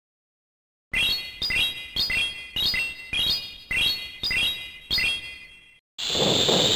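Bright chimes ring out in a quick series.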